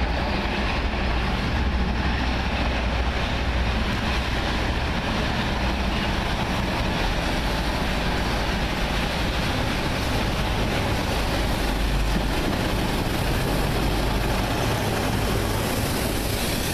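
A steam locomotive chuffs heavily as it approaches and passes close by.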